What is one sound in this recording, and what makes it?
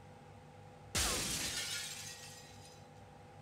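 A gunshot bangs and rings out in an echoing room.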